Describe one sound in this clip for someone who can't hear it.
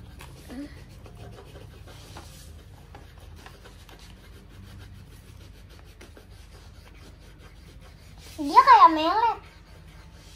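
Coloured pencils scratch softly on paper.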